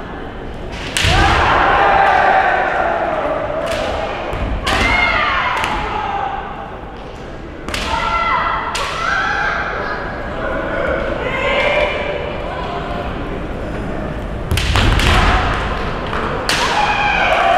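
Bamboo swords clack sharply against each other and armour.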